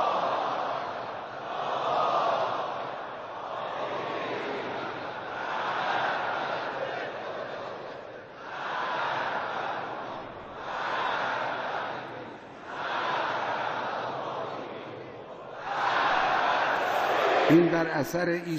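A large crowd chants in rhythmic waves outdoors.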